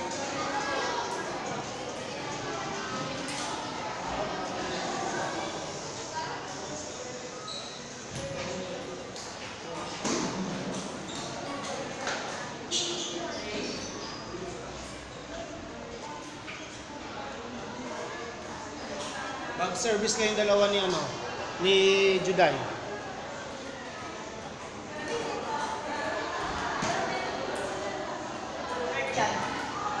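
Young people chatter and shout in an echoing hall.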